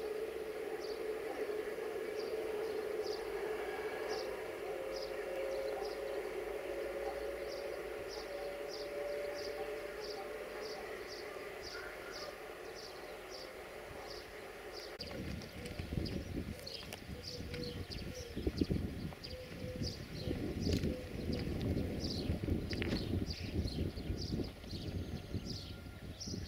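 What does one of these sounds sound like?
Train wheels click rhythmically over rail joints.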